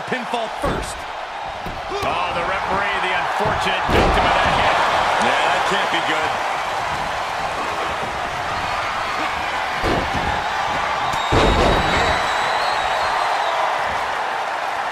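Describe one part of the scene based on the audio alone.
A large crowd roars and cheers.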